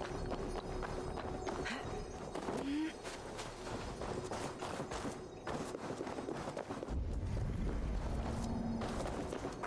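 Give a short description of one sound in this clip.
Footsteps patter quickly over stone and grass.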